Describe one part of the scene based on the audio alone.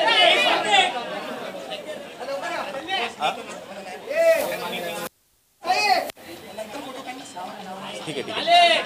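Men talk loudly nearby in a lively crowd.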